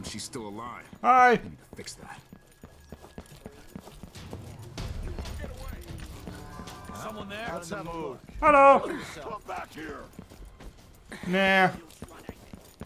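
A young man shouts out loudly and suddenly a few times.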